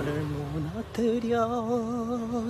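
A young man sings a drawn-out note close to a phone's microphone.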